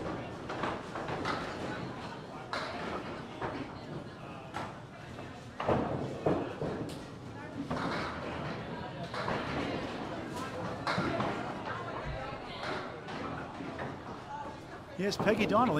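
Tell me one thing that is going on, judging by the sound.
Pins crash and clatter as balls strike them.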